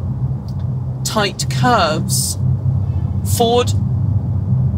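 A woman speaks close by.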